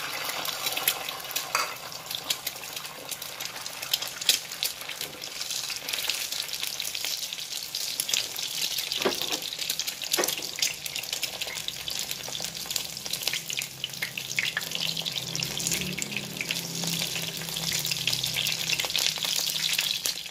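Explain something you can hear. An egg sizzles and crackles in hot oil.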